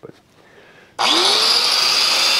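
An angle grinder whirs up to speed and whines loudly.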